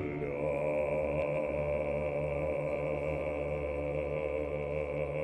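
A middle-aged man sings loudly in an operatic voice, holding a long note.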